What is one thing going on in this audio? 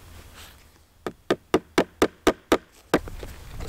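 A small hammer knocks sharply several times in quick succession.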